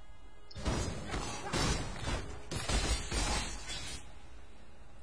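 Magic spells crackle and burst in quick succession.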